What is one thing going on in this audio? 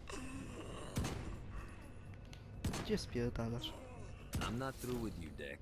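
A sniper rifle fires single loud shots.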